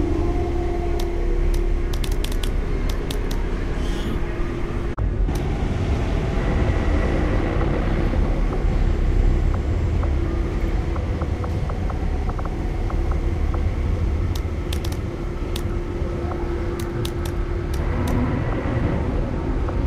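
Short menu clicks tick in quick runs.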